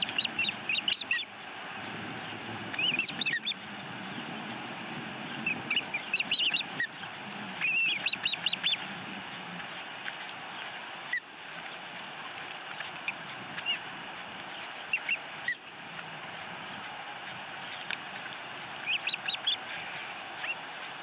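Osprey chicks chirp and peep in short high bursts.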